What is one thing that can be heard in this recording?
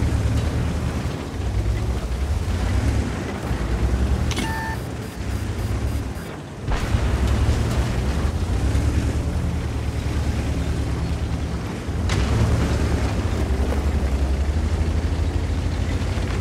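A tank's tracks clatter and squeak on rocks.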